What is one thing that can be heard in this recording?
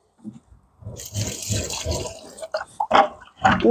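Sand pours into a bucket with a hissing rush.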